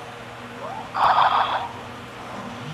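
A loud game sound effect bursts out briefly.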